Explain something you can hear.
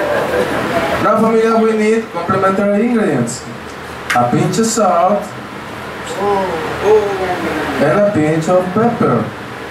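A man speaks with animation into a microphone, heard over a loudspeaker in an echoing room.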